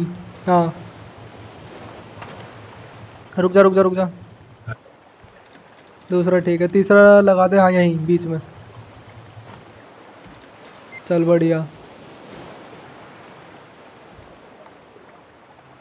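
Sea waves wash softly and steadily.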